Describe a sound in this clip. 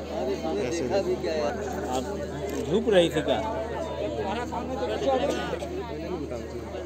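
A crowd of women sings together nearby.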